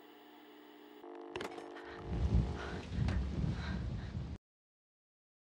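Videotape static hisses and crackles with distortion.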